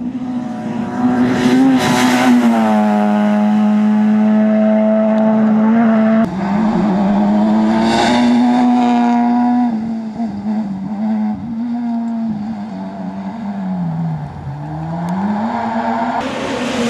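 A rally car engine roars loudly as the car speeds past, then fades away.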